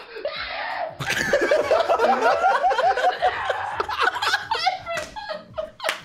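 Two young men laugh loudly into a microphone.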